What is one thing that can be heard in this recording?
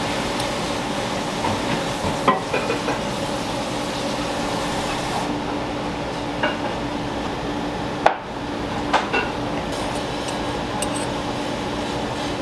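A metal spoon clinks against a small metal tin.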